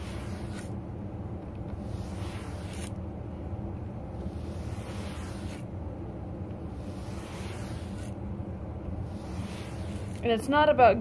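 A tool drags across a soft surface, scraping in slow repeated strokes.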